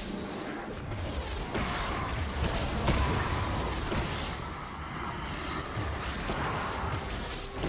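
Magic spells crackle and whoosh in a game fight.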